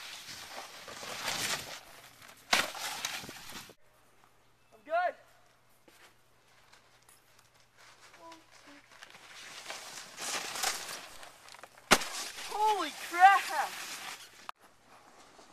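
A snowboard scrapes and hisses across snow.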